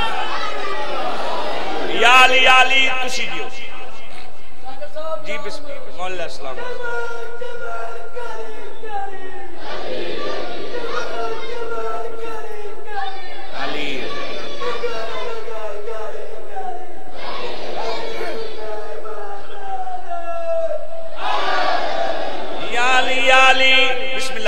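A man chants loudly into a microphone, heard through loudspeakers.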